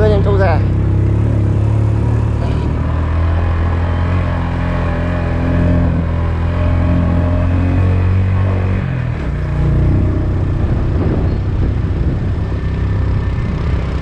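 A motorbike engine hums steadily and shifts lower partway through.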